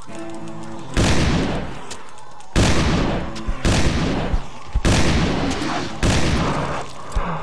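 Loud gunshots boom one after another.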